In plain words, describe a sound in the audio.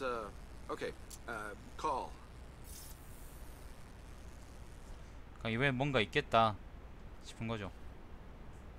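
A man speaks casually nearby.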